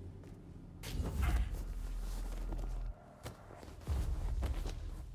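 A body thuds heavily onto a hard floor.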